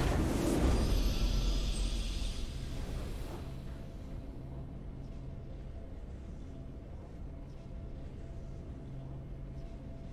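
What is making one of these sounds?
A triumphant victory fanfare plays and slowly fades.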